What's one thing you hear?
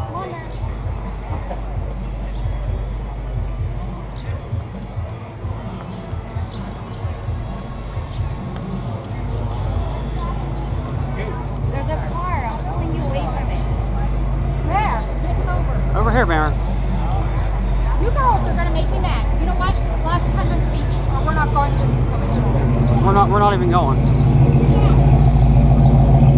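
A crowd murmurs outdoors in a busy street.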